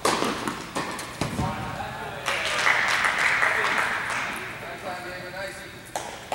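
A tennis ball is bounced and struck, each thud echoing in a large indoor hall.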